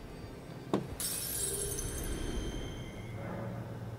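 A magical shimmer sparkles brightly and slowly fades.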